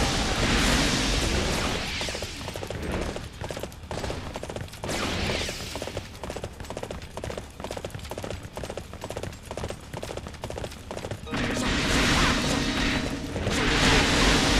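Blades swing and strike in a noisy fight.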